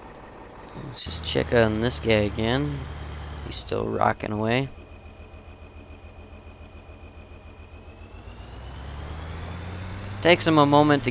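A tractor engine drones steadily, then revs higher.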